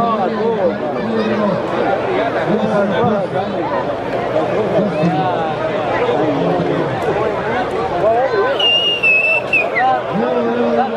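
A crowd of spectators talks and calls out outdoors.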